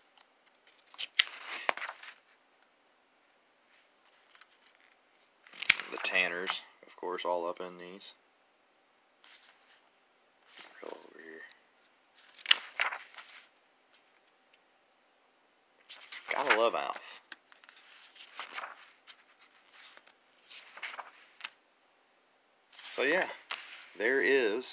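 Paper pages rustle as they are turned by hand.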